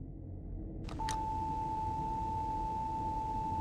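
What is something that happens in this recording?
An old television gives off a steady, high test tone.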